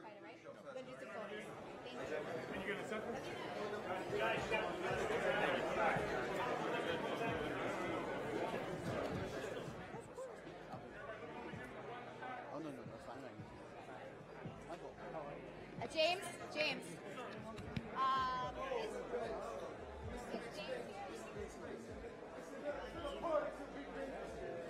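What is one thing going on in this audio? A crowd of people chatters and calls out loudly in a large room.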